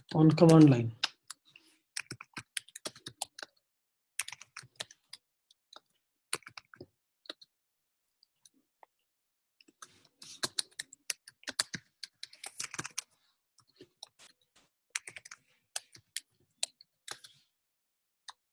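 Keys clatter on a keyboard in quick, uneven bursts of typing.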